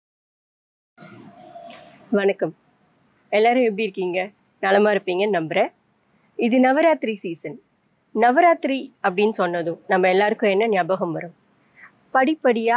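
A young woman speaks calmly and clearly into a microphone, close by.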